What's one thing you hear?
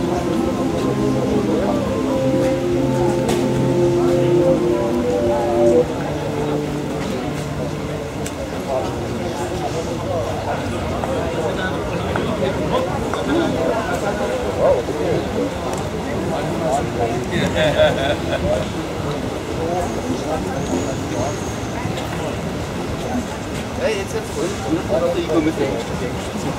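A crowd of men and women chatter outdoors, close by and farther off.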